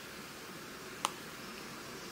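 A pastel stick clicks down onto a hard surface.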